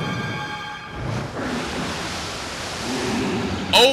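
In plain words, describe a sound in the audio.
A fierce wind roars in a whirlwind.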